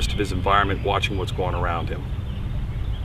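A man speaks calmly and close by, outdoors.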